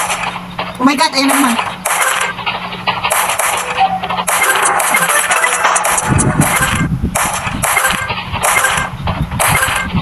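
Game marbles clack and burst with bright chiming effects.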